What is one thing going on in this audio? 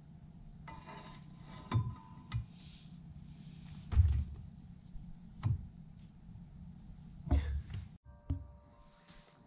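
Metal clanks and knocks against metal.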